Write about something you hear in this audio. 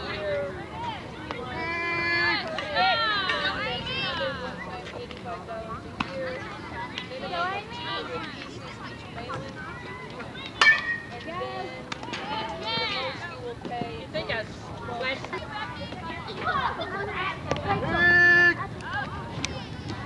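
Women and girls cheer and shout excitedly outdoors.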